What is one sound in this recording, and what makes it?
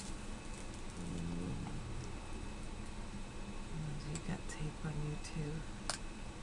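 A middle-aged woman speaks quietly and briefly close to a microphone.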